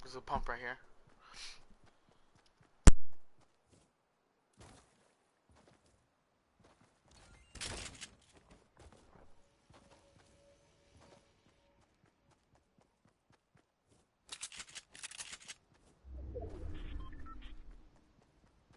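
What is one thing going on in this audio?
A game character's footsteps patter quickly over grass and dirt.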